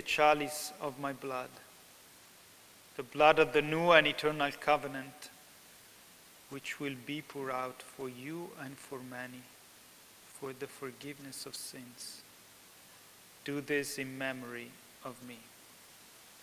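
A young man prays aloud in a slow, chanting voice through a microphone.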